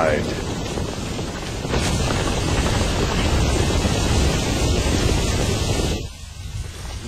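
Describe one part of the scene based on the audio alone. A large crowd roars and clamours.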